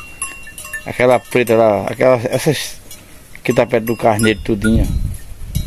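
Sheep bleat loudly close by.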